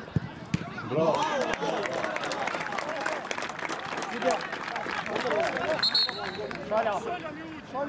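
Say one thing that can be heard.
A crowd of men cheers and shouts outdoors.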